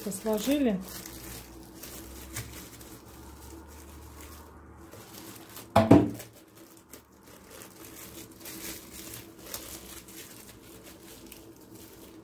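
Plastic wrap crinkles and rustles between hands.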